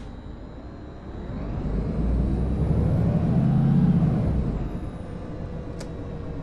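A bus engine revs up and then winds down.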